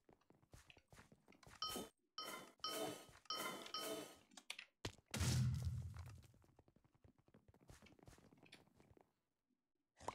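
Short game sound effects of hits and blasts ring out in quick succession.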